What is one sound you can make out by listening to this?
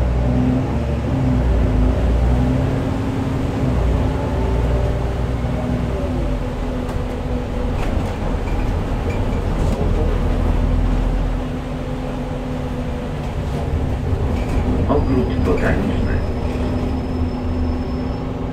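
A bus engine hums and drones steadily as the bus drives.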